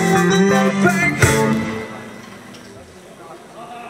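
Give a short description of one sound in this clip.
A rock band plays a loud final chord through loudspeakers that rings out and fades.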